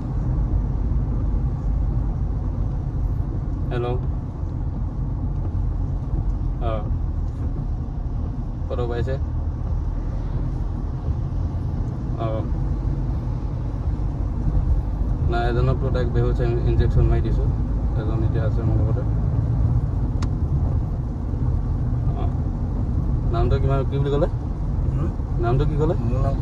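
A car engine hums steadily with road rumble inside the cabin.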